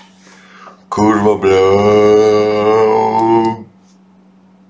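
A man makes a drawn-out sound with his voice.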